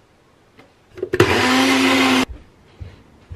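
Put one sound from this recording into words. A blender whirs loudly for a moment.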